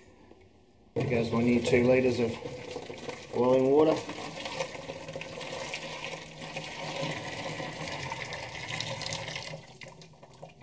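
Water pours from a kettle and splashes into a container.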